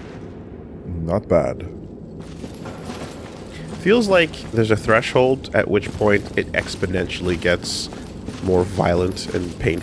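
A man talks with animation into a microphone, close up.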